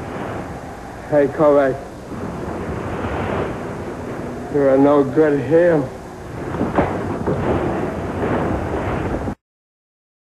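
Men shout and struggle in a scuffle.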